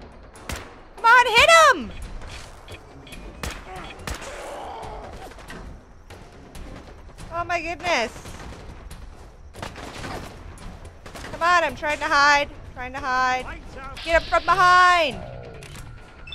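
A young woman shrieks and exclaims loudly and excitedly into a close microphone.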